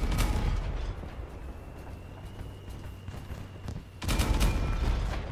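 A large armoured vehicle's engine rumbles steadily.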